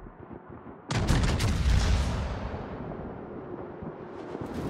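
Big guns fire in loud booming blasts.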